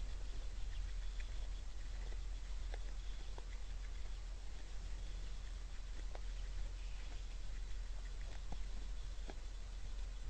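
Deer crunch corn as they feed, with soft scattered clicks.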